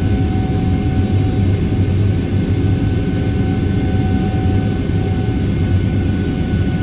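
A jet engine roars steadily and loudly, heard from inside an airliner cabin.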